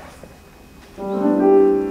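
A piano starts playing.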